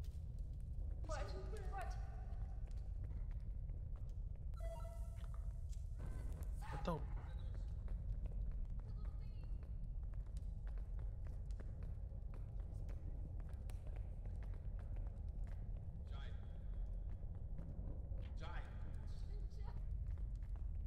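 A young woman speaks casually into a close microphone.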